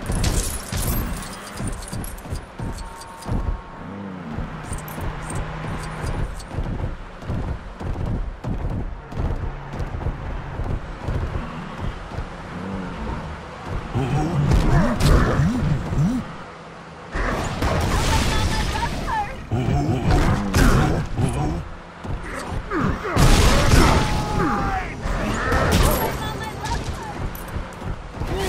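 Heavy footsteps thud on pavement.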